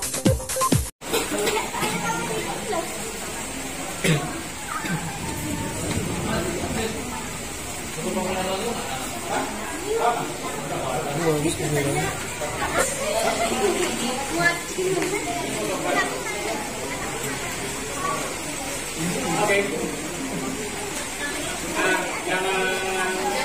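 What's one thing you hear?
Several children talk and chatter nearby.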